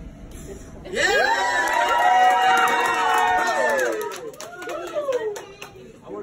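A crowd of children and adults screams and cheers loudly nearby.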